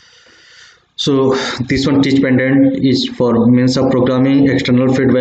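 A man lectures calmly into a close microphone.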